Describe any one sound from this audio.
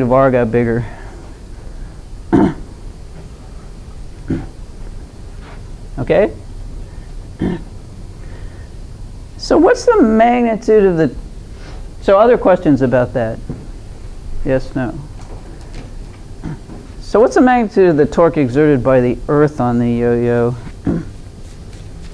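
An elderly woman speaks calmly and clearly, close by.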